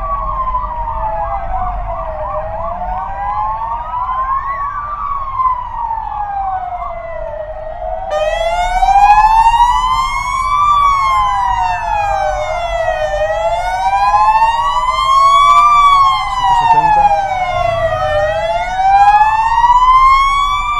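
A siren wails close by, rising and falling steadily, then grows louder.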